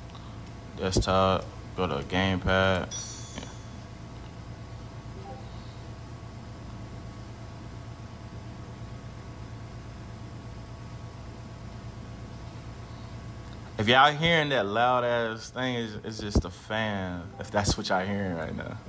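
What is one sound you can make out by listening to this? Buttons click softly on a handheld game console.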